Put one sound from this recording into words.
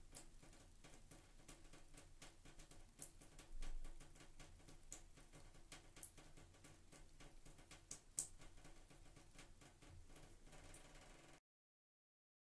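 Water drips and patters in quick, uneven drops.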